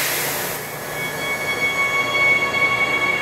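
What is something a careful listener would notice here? Train brakes squeal with high steady tones.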